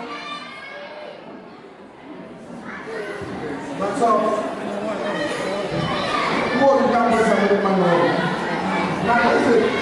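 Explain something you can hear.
Men and women talk and chatter with animation in a lively crowd indoors.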